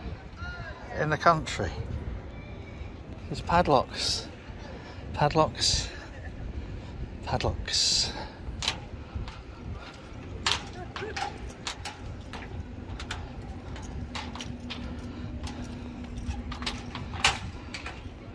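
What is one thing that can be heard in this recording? Footsteps clank on a metal footbridge.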